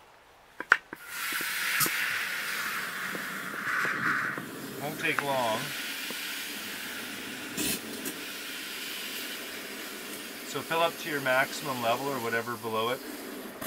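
Water hisses from a hose nozzle into a plastic bottle.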